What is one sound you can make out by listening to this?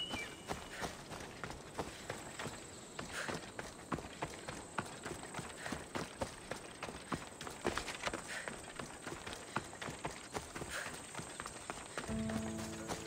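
Footsteps crunch on dry grass and stony ground.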